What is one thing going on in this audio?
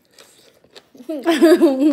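A young girl laughs and talks.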